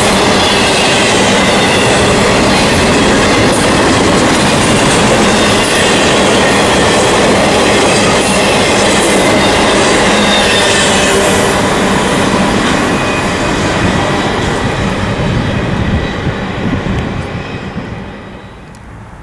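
An intermodal freight train rolls past close by.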